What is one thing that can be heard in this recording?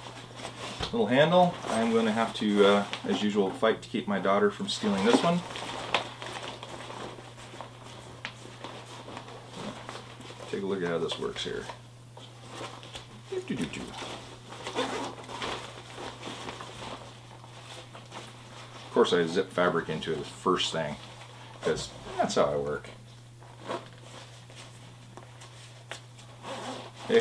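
Fabric of a bag rustles as it is handled.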